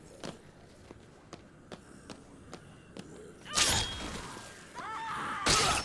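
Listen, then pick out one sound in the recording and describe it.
Footsteps run across a hard tiled floor.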